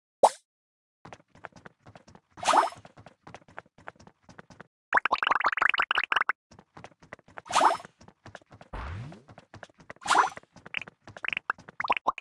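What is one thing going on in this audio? Quick electronic game sounds pop and tick in rapid bursts.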